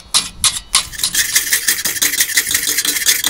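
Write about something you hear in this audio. A power drill whirs briefly.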